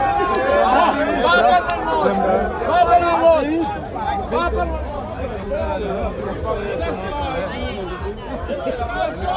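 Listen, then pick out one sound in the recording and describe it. A crowd of men and women talks and shouts loudly close by, outdoors.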